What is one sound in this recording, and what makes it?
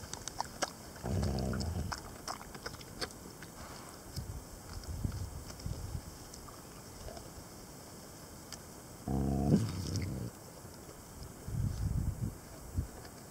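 Puppies growl and whine playfully up close.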